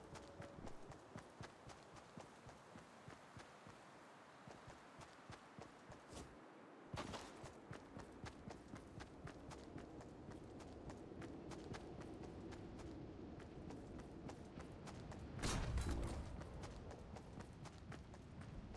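Footsteps patter quickly over grass and sand.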